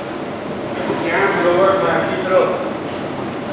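A young man calls out loudly nearby.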